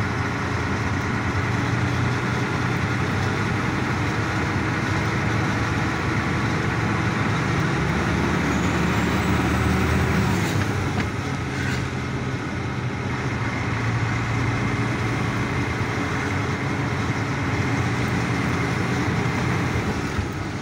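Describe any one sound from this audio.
Wind rushes past an open vehicle.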